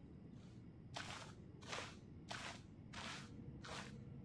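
Footsteps tap at a steady pace.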